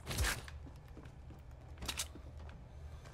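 A pickaxe strikes a wall with sharp thuds.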